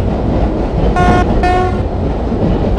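A train horn blows two short blasts.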